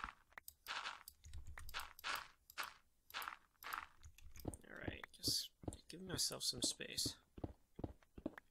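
Stone blocks crack and crumble as they are dug out, again and again.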